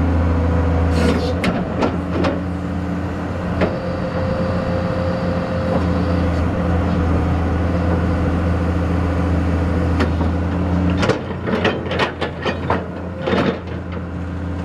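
A steel excavator bucket clanks and knocks.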